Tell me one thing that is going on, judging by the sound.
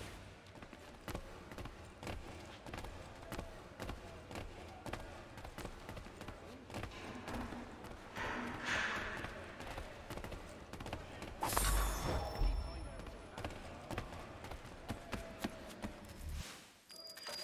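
Bare feet pad quickly across wooden boards.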